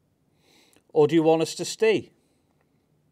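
A man speaks briefly and loudly up close.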